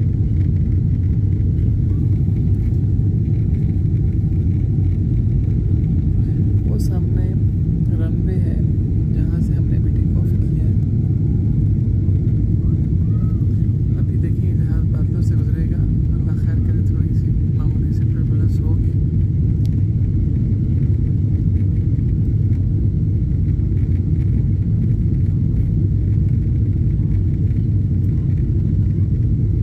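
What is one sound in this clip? A jet engine roars steadily inside an airplane cabin.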